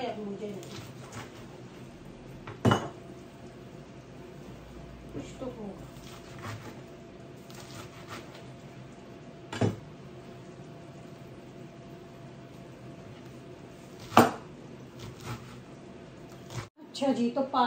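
A knife chops leafy greens on a cutting board.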